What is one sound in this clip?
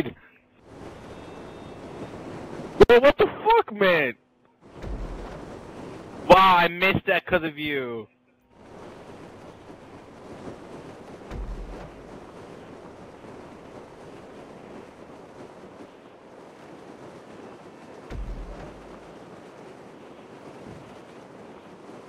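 Wind rushes steadily past a gliding parachute.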